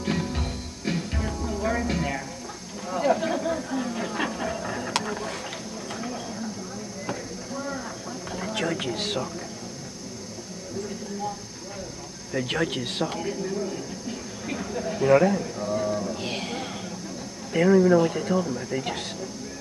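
A young woman sings through loudspeakers in a large echoing hall.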